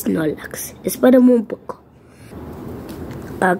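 Plastic binder pages rustle as a page is turned.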